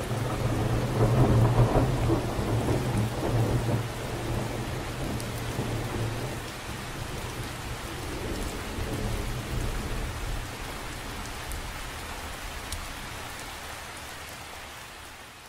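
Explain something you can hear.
Raindrops patter steadily on the surface of a lake.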